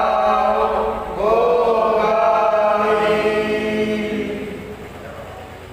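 Men nearby chant a prayer together in long, drawn-out tones.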